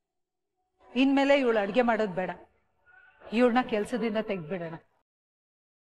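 A woman speaks firmly, close by.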